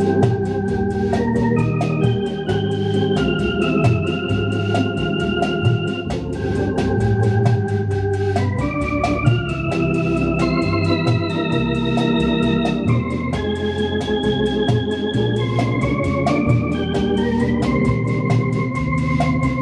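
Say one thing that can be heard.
Bass pedal notes on an electric organ sound low underneath.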